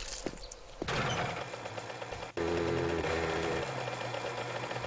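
A small motorbike engine runs steadily.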